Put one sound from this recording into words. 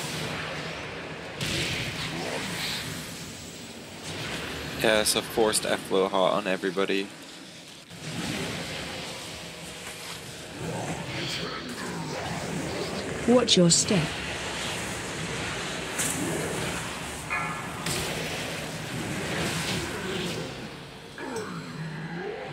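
Spell effects whoosh and burst in a battle.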